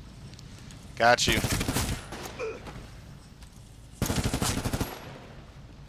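A rifle fires loud, rapid bursts of gunshots.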